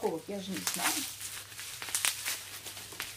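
Scissors snip through plastic wrap.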